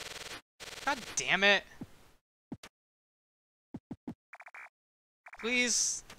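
Short retro video game sound effects chirp and blip.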